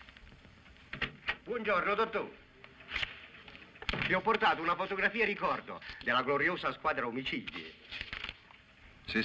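A middle-aged man greets someone and talks cheerfully.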